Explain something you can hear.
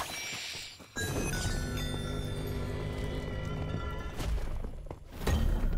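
A bright chiming fanfare plays as a floor is cleared.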